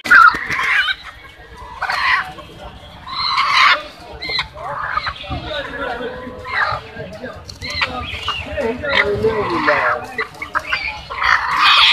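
Chickens flap their wings and rustle.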